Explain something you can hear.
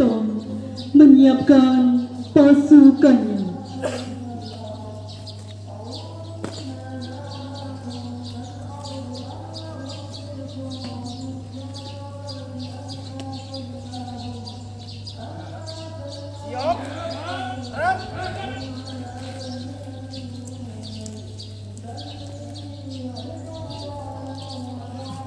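A large crowd of men and women sings together outdoors.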